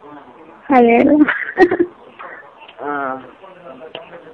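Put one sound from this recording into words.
A young woman speaks with animation over a phone line.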